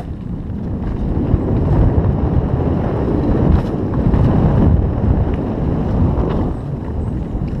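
Mountain bike tyres roll fast over a dirt trail.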